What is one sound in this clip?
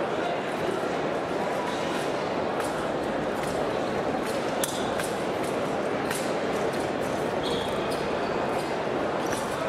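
Fencers' feet tap and stamp on the floor.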